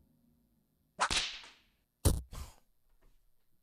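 A whip lashes with sharp cracks.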